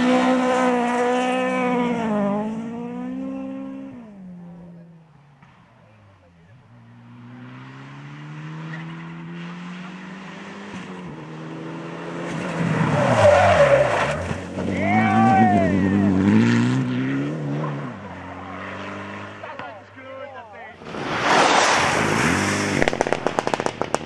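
Gravel sprays and rattles under spinning tyres.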